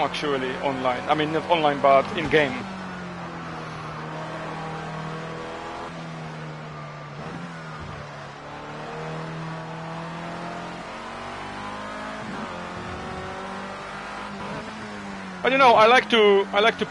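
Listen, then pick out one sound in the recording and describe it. A racing car engine whines steadily, rising and falling in pitch through gear changes.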